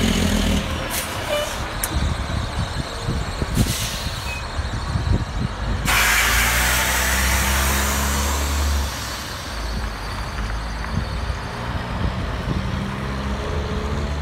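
A heavy truck engine rumbles as a trailer rolls past close by.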